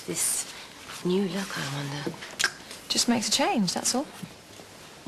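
Another young woman answers calmly nearby.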